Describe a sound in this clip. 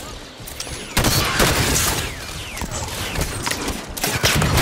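Rapid gunfire bursts and echoes.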